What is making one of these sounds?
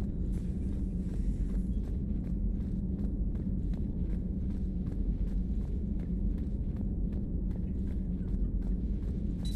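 Footsteps clank on a metal floor at a steady running pace.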